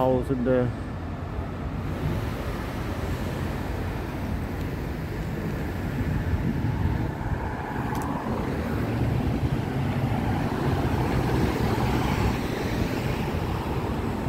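Car traffic rumbles along a city street outdoors.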